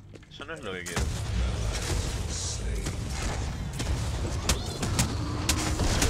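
Magic blasts whoosh and crackle in a video game battle.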